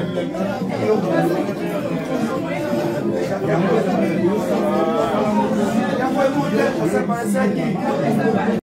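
A woman speaks animatedly close to the microphone.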